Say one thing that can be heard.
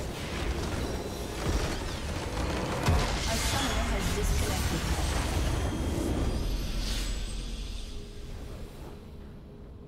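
A loud magical blast booms and crackles, then fades away.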